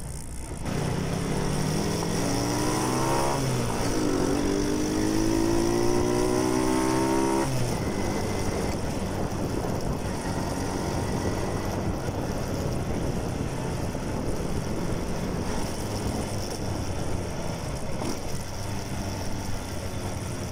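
A motorcycle engine revs up and changes gear close by.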